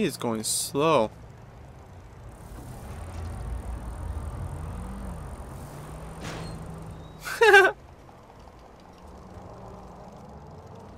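A bicycle rolls steadily over pavement.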